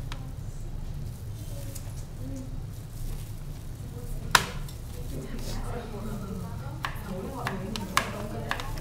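Tongs clink against a metal pot as noodles are tossed.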